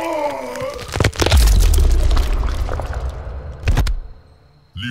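Heavy blows land with loud, crunching thuds.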